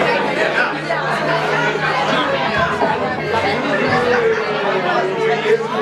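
A rock band plays loudly with electric guitars and drums in a small room.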